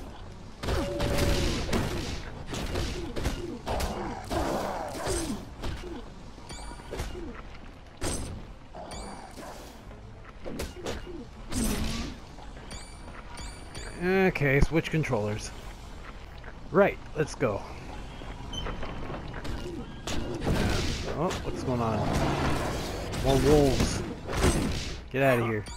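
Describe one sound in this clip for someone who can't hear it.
Swords clash and strike in a close fight.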